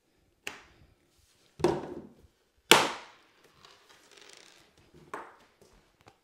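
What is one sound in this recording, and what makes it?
Tools knock sharply on a hard floor.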